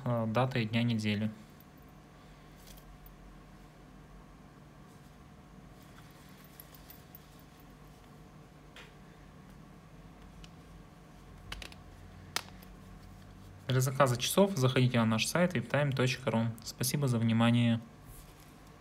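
Hands handle a plastic watch with soft rubbing and clicks.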